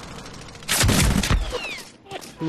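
A gun fires a quick burst of loud shots.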